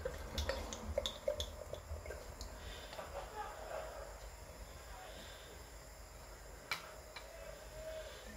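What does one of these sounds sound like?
Beer glugs and fizzes as it is poured into a glass.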